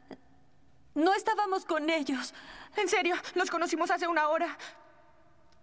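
A young woman cries out loudly in distress.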